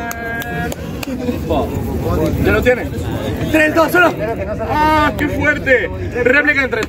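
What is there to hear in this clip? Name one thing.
A young man raps with animation close by.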